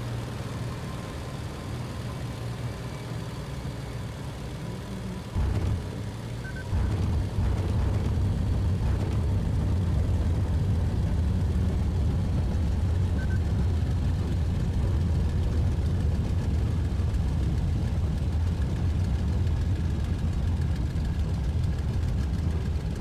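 A propeller engine idles with a low, steady rumble, then roars louder.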